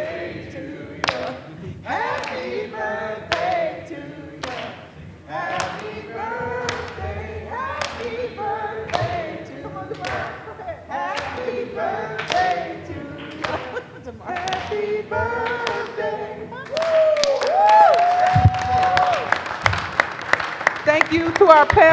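People clap their hands along in a steady rhythm.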